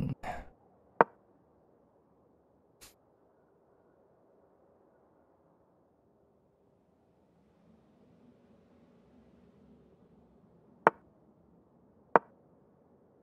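A short wooden click sounds as a chess piece is placed.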